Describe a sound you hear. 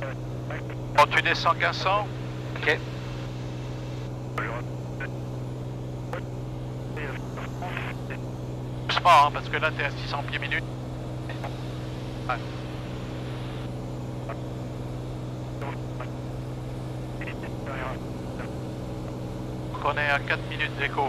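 A man speaks in short bursts over a headset intercom.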